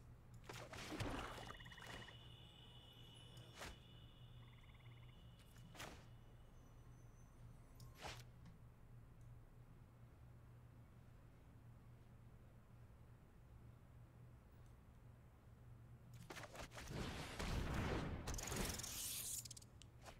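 Game sound effects chime and whoosh.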